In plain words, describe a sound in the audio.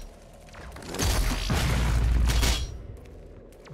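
A creature bursts apart in a loud explosion.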